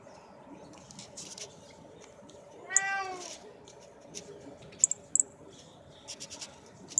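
A small bird chirps in short, sharp bursts nearby.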